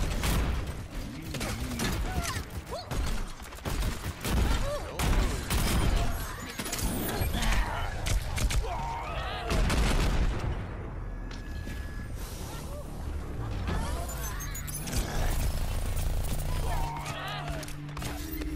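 Rapid gunfire and explosions crack and boom in a video game.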